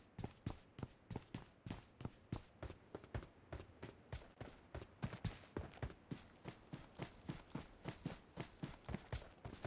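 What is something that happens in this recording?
Footsteps run quickly and steadily over the ground.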